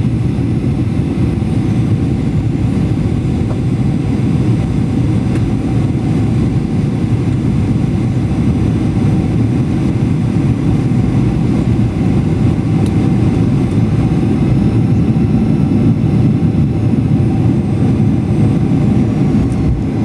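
Jet engines roar steadily inside an airplane cabin.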